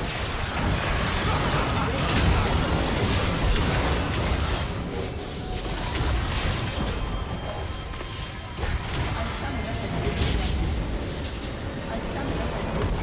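Game spells and blows clash in a hectic battle.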